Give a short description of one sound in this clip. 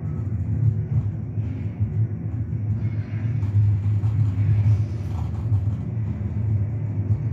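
Heavy footsteps thud on a metal floor.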